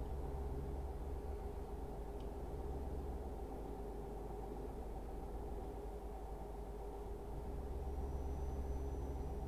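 A truck engine drones steadily at low pitch.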